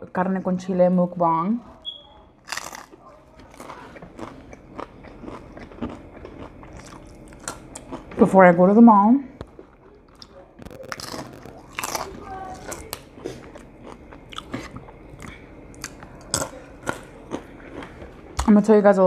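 A young woman crunches on crispy chips.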